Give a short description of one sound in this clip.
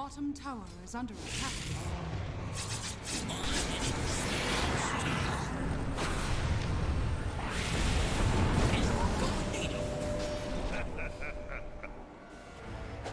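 Spells crackle and explosions boom in a fast video game battle.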